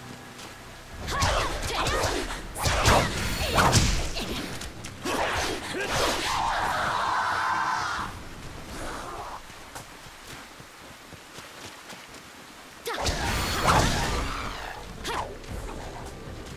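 Blades clash and slash in a fierce fight.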